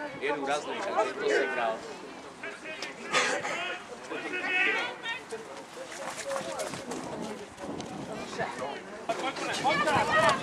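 Young men shout and call to each other across an open outdoor field.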